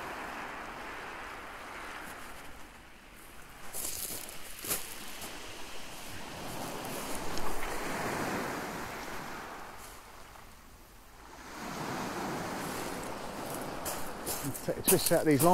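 Waves wash up and draw back over a shingle beach.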